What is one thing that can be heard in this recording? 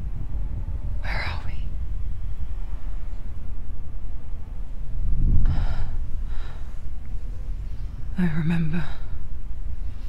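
A young woman speaks softly and hesitantly, close by.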